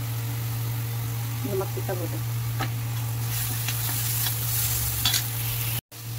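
A metal spoon scrapes and clinks against a pan.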